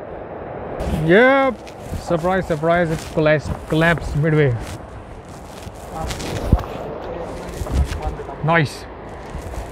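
A young man talks close by, with animation.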